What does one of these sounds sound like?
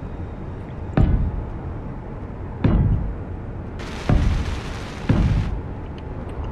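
Heavy metal clunks ring out as parts snap into place.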